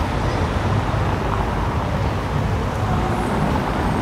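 A car drives slowly along a street.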